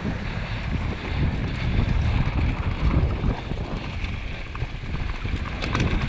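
Wind rumbles loudly against a microphone.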